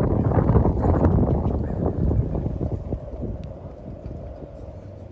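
Wind blows in gusts outdoors, rumbling against the microphone.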